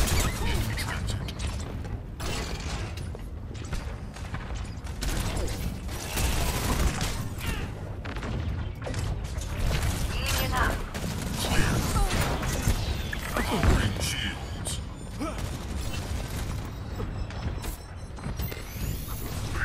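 A heavy metal ball rolls and rumbles along the ground.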